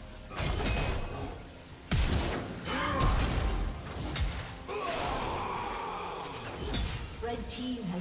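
Spell effects burst and whoosh as characters fight.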